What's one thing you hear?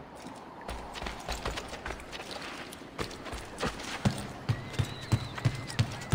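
Footsteps thud quickly on hard ground and wooden boards.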